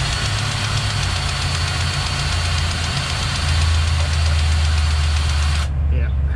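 A cordless grease gun's motor whirs as it pumps grease.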